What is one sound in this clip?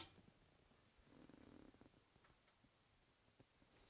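A small wooden cabinet door swings open softly.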